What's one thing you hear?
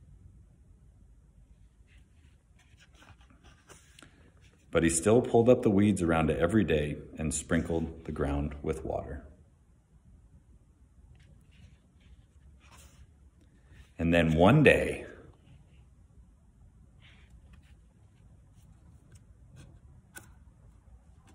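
Stiff book pages turn.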